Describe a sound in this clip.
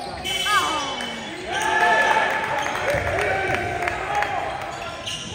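Spectators cheer and call out.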